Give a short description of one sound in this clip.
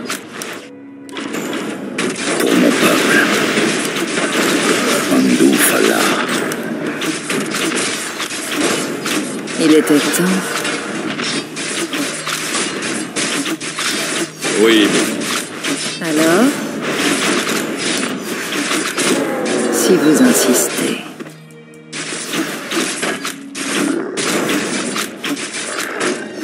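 Weapons clash and strike over and over in a fierce fight.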